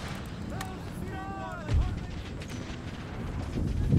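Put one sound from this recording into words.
Muskets fire in a volley.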